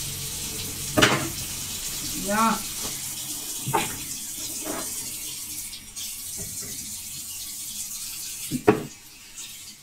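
Kitchen utensils knock and clatter against pans and dishes.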